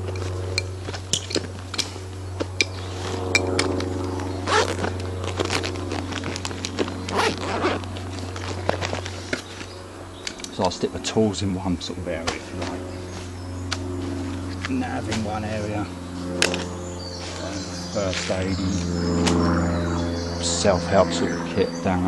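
Gear rustles and clicks as it is handled.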